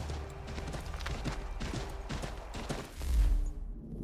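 Horse hooves gallop through snow.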